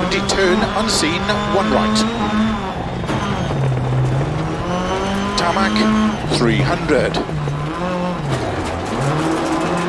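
A rally car engine roars, its pitch dropping and rising as it changes gear.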